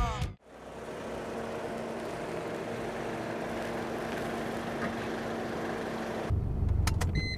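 A car engine hums as a car pulls up slowly.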